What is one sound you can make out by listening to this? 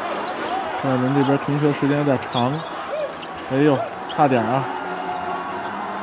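A crowd chants loudly in rhythm.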